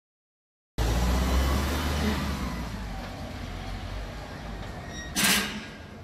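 A vehicle engine idles nearby.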